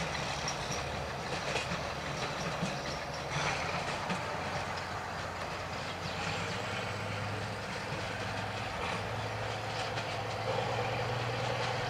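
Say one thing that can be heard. A steam locomotive puffs as it pulls away and fades into the distance.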